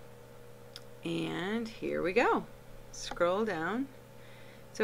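A woman talks with animation, close to a microphone.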